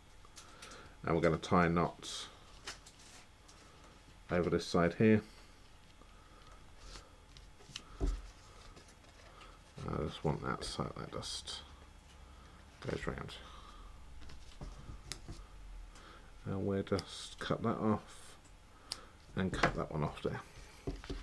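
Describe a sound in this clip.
Paper rustles as a card is handled.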